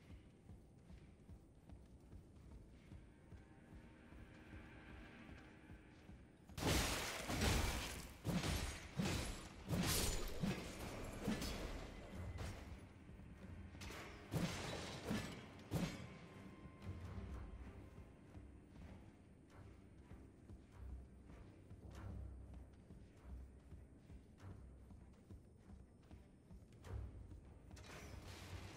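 Armoured footsteps run on stone.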